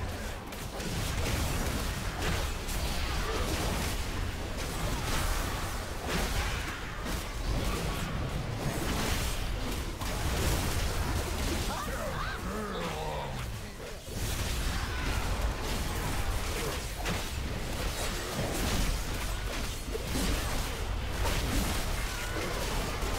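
Spell effects and weapon strikes clash and whoosh in a noisy battle.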